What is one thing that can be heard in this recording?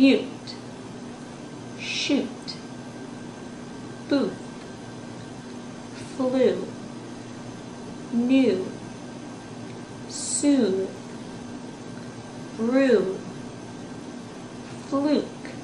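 A young woman speaks close by in short bursts, about every two seconds, with a rising and falling voice.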